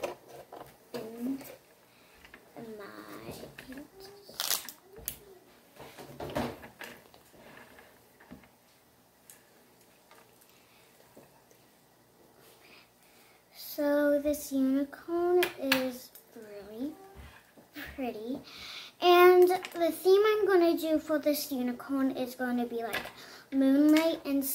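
A young girl talks chattily, close to the microphone.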